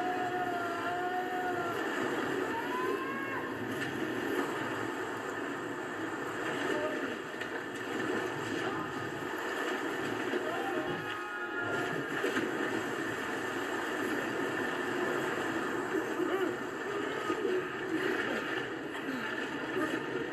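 A waterfall roars and splashes.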